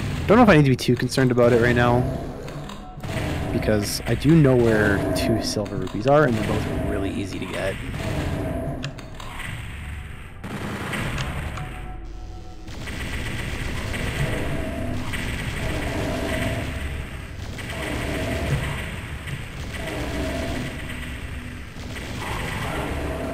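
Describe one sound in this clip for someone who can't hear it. A man talks into a microphone with animation, close up.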